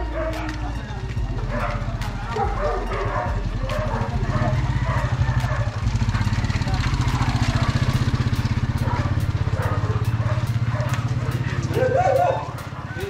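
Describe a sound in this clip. A motorcycle engine rumbles nearby, then fades.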